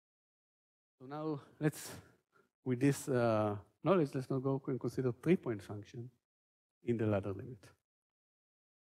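A man lectures calmly, heard through a microphone.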